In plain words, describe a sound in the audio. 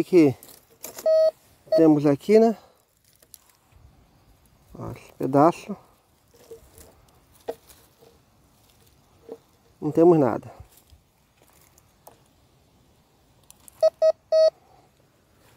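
A metal detector gives short high beeps.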